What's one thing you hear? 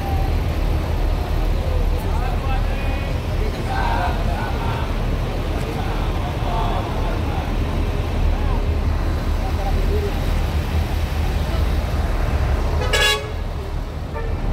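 A crowd of men and women chatters at a distance.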